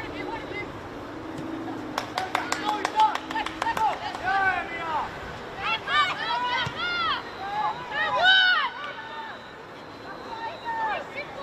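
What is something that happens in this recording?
Young women shout and call out across an open field at a distance.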